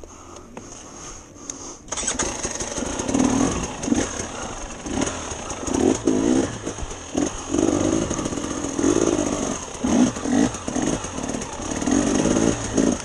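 Tyres crunch and clatter over loose rocks.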